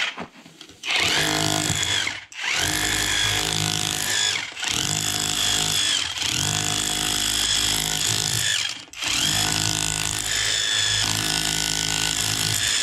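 A power hammer drill chatters steadily against concrete, with brief pauses.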